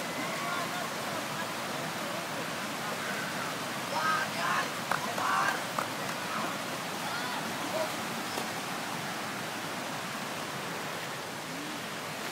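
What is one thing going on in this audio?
Water rushes steadily over a weir.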